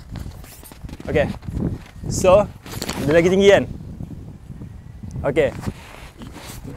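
A young man speaks calmly close by, outdoors.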